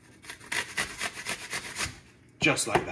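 A grater scrapes rapidly against a hard block of cheese.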